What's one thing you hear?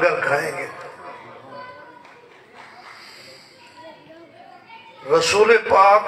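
A man speaks loudly through a microphone and loudspeakers, echoing.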